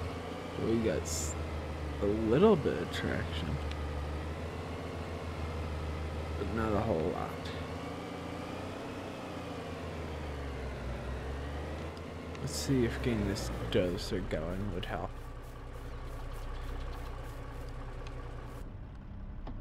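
A diesel truck engine rumbles steadily at idle.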